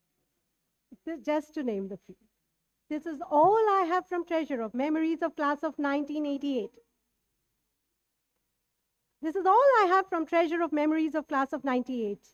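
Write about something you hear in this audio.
A woman speaks calmly through a microphone over loudspeakers in a large hall.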